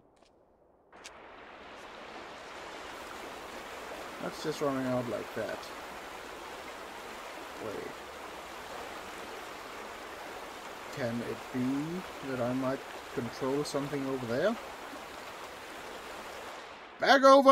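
A river rushes and churns nearby.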